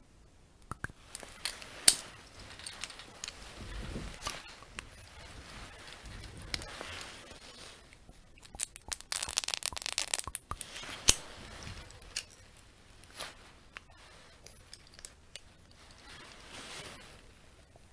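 A young man whispers softly close to the microphone.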